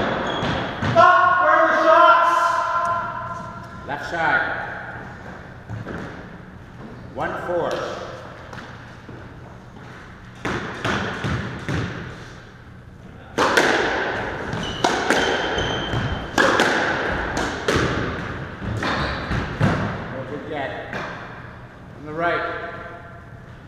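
Sneakers squeak sharply on a wooden floor.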